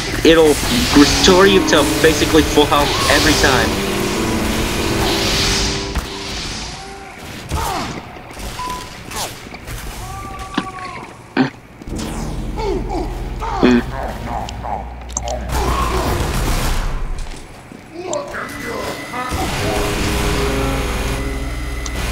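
A heavy rotary gun fires in rapid, roaring bursts.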